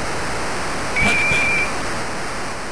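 A referee's whistle blows shortly.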